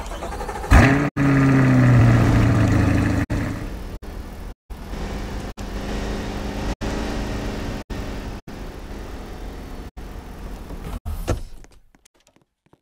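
A car engine hums and revs at low speed.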